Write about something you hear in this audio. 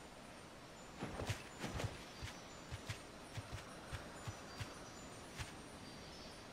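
Large birds' feet patter softly as they walk over grass.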